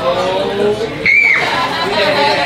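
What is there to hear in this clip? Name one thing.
A young woman squeals loudly.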